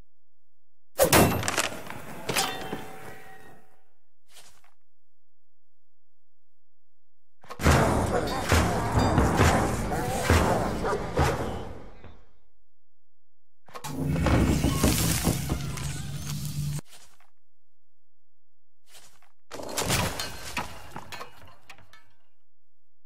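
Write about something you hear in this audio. Short electronic game sound effects play in bursts.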